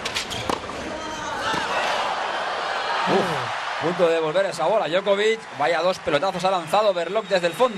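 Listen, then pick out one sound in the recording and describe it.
A crowd cheers and applauds in a large stadium.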